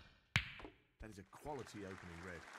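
Snooker balls knock against each other.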